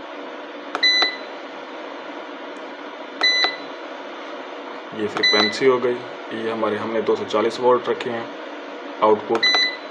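An electronic device beeps in short, high double tones.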